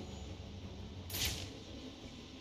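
A rushing whoosh sweeps past as a figure dives.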